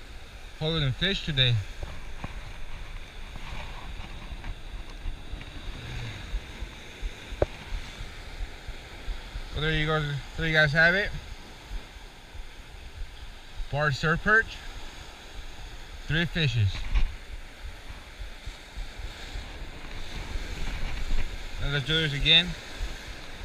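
Waves crash and surge against rocks close by.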